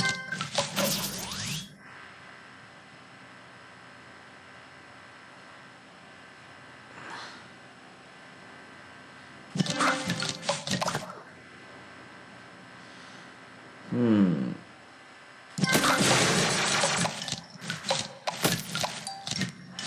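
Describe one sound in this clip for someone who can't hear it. Bright game sound effects chime and burst in quick flurries.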